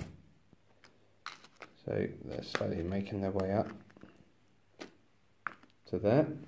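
Small plastic figures tap softly against a tabletop.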